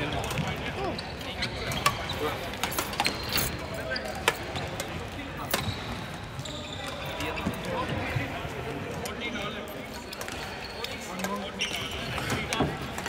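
Shuttlecocks are struck with rackets, with sharp pops echoing in a large hall.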